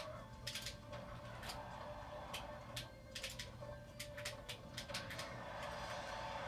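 Upbeat video game music plays through a television speaker.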